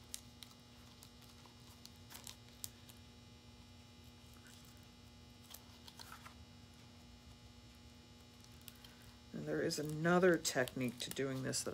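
Pliers snip and click on wire.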